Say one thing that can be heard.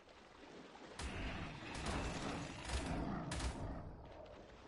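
A large creature strikes with heavy, crunching thuds.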